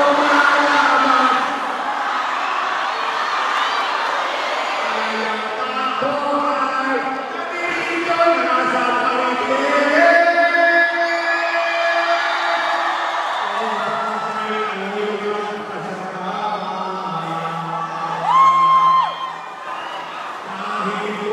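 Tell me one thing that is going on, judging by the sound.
A large crowd sings along and cheers.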